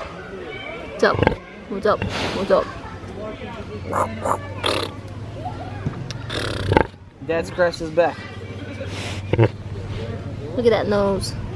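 A pig grunts and snorts close by.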